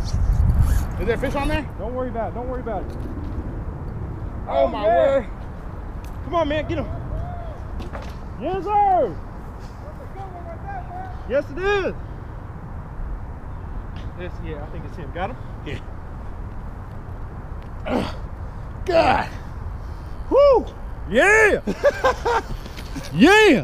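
Men talk and call out with excitement close by.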